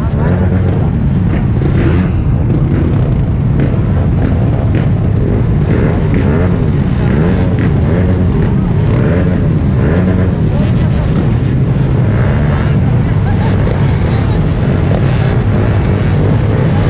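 Many motorcycle and scooter engines idle and rumble close by.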